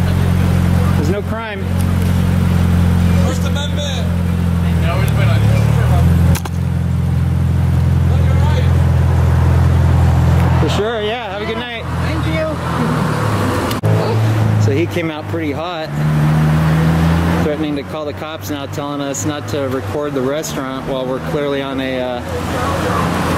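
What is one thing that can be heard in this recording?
Men talk outdoors nearby.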